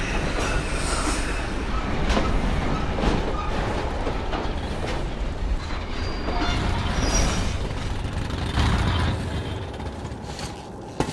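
A rail cart rumbles and clatters along tracks in an echoing tunnel.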